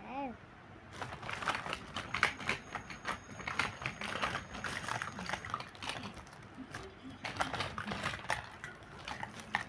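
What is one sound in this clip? A plastic bag rustles and crinkles.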